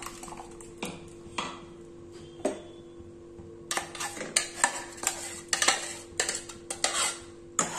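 Thick sauce pours and plops into a metal pot.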